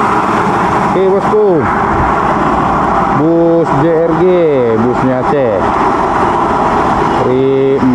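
A bus horn plays a wavering, musical tune in several bursts.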